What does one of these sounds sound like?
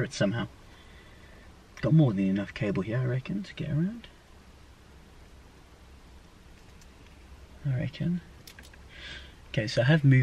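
A young man talks calmly and close by, in bursts.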